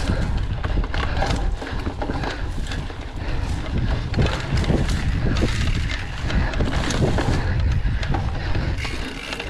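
Wind rumbles past outdoors.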